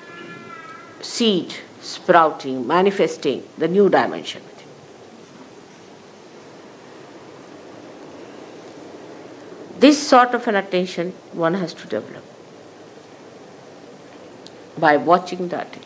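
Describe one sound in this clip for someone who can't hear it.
An elderly woman speaks calmly into a close microphone, with pauses.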